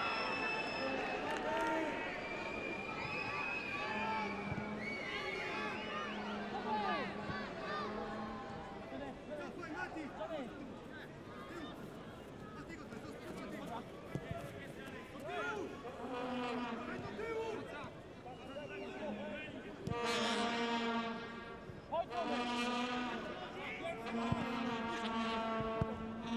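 A stadium crowd chants and sings loudly.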